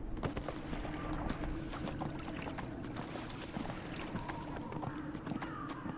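Hooves clatter steadily as a mount gallops over stony ground.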